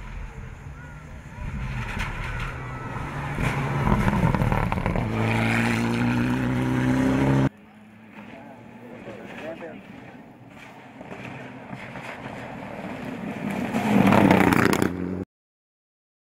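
A rally car races past at full throttle on a gravel road.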